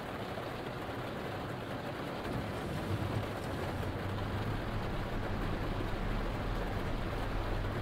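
A bus engine hums low and grows louder as it pulls away.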